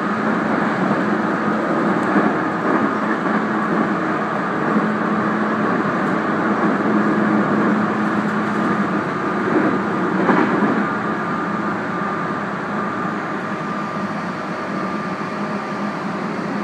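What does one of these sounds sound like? Wheels clatter over rail joints.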